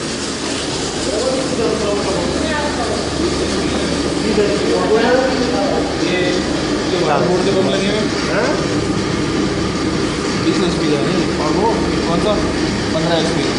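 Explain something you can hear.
A pump motor hums steadily nearby.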